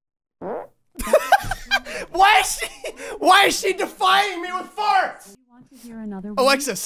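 A young man laughs loudly and hysterically close to a microphone.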